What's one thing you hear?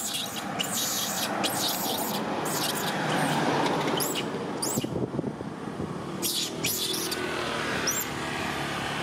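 A young monkey screams and shrieks loudly, close by.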